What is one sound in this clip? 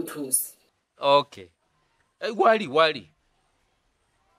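A man talks on a phone, close by, in a low voice.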